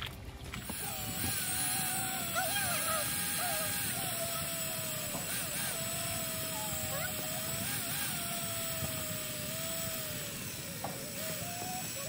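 A cordless drill whirs steadily, bores into a tree trunk and changes pitch slightly.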